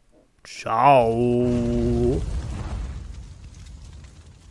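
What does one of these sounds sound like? A deep rumbling whoosh swells and slowly fades.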